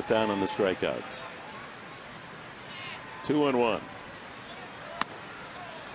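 A crowd murmurs steadily in a large open stadium.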